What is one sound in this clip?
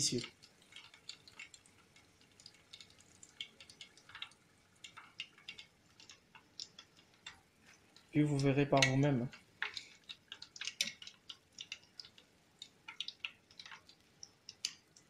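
Hot oil sizzles and crackles as chicken fries.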